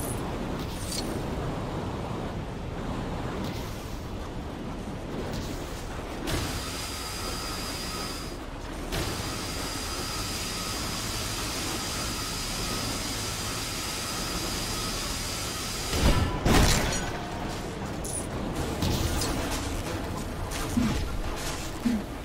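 Fires crackle and roar steadily.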